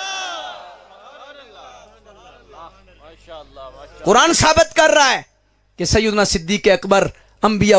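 A man preaches loudly and with passion into a microphone, his voice echoing over loudspeakers.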